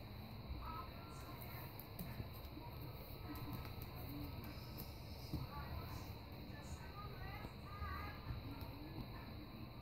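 A raccoon chirps and chitters softly.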